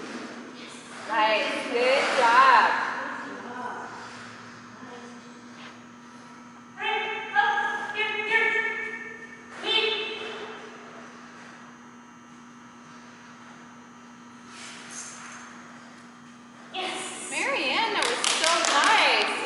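A woman calls out and praises a dog with animation in a large echoing hall.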